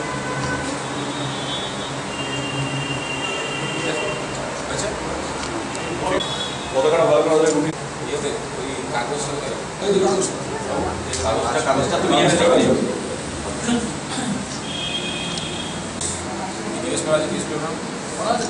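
A crowd of men chatter in a room.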